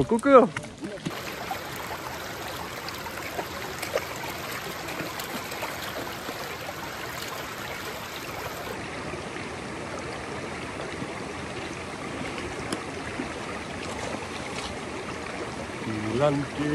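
A stream rushes and babbles over stones.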